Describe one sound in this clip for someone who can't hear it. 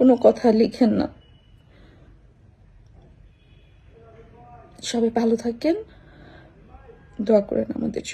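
A young woman speaks calmly and close to the microphone, in short bursts with pauses.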